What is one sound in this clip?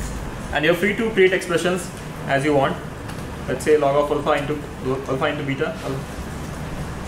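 A young man speaks calmly through a microphone.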